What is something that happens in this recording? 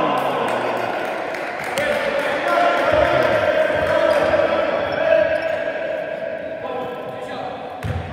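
Sneakers squeak on a hardwood court in a large echoing hall.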